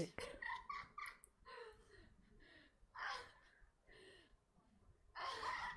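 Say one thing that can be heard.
A young woman giggles on a phone call.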